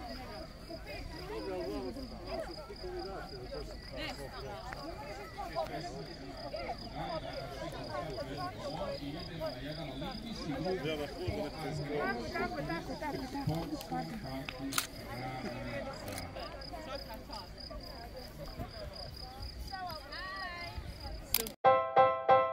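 A crowd of children and adults chatter and call out outdoors.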